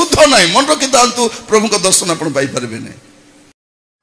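A man preaches loudly and with animation into a microphone, heard through a loudspeaker.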